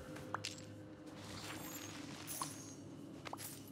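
A bright magical chime sparkles.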